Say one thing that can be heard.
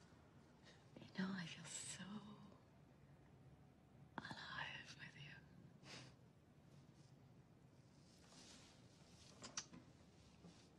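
A woman speaks quietly and warmly close by.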